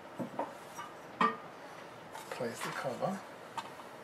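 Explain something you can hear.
A metal cover clatters as it is set down on a hard surface.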